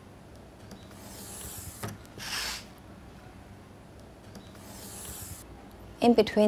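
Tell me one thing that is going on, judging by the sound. A pencil scratches along paper against a ruler.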